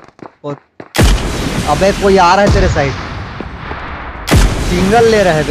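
A rifle fires loud shots that echo away.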